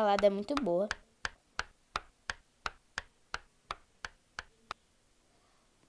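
A knife chops steadily on a cutting board.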